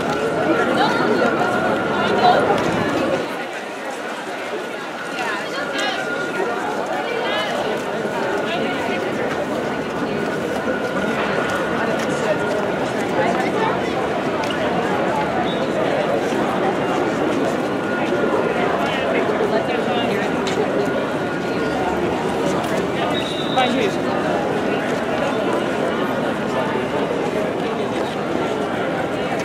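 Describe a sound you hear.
A large crowd of men and women chatters and murmurs outdoors.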